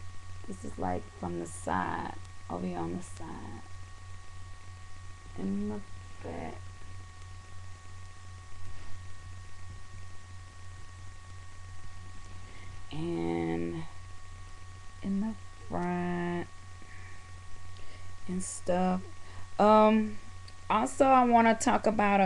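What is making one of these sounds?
A young woman talks casually and close up, in short bursts with pauses.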